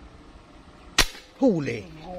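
An air rifle fires a single sharp shot.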